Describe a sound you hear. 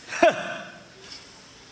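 A man cries out loudly through a stage microphone.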